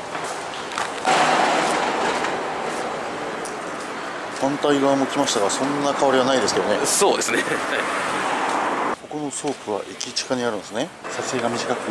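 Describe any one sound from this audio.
Traffic hums along a street outdoors.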